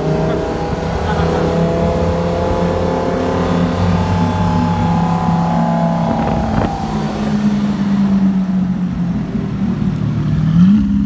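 A sports car engine rumbles loudly and revs up and down as the car drives past.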